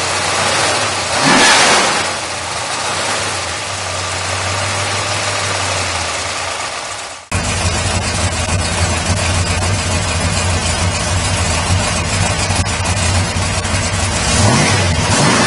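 A car engine revs up briefly.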